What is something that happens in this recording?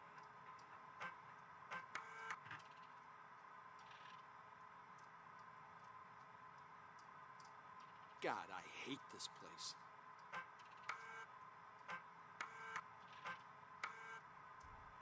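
A computer terminal beeps and clicks as menu items are selected.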